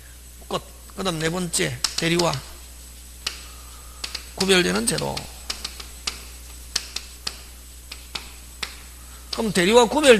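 A man speaks over a microphone in short bursts, with emphasis.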